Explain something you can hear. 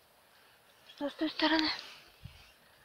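A young child speaks.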